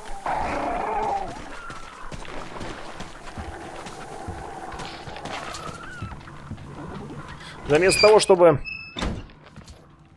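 Footsteps crunch over snow and wooden boards.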